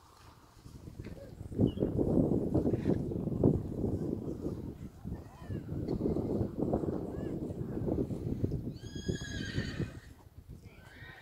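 Wind gusts against the microphone outdoors.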